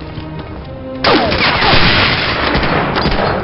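A rifle shot cracks loudly and rings out.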